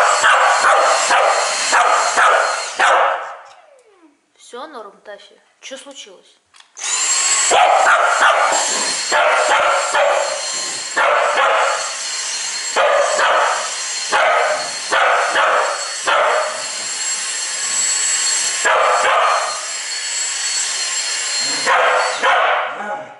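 A dog barks excitedly.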